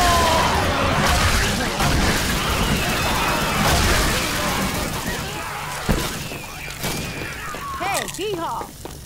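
Fire roars and crackles loudly.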